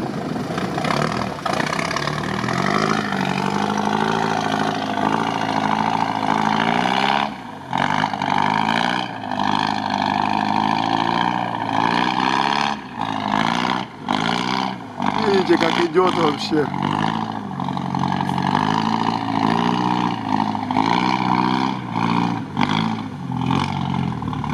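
Water and mud splash under a truck's tyres.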